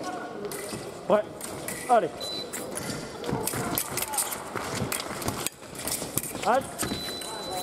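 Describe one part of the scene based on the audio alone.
Sports shoes squeak sharply on the floor as fencers lunge.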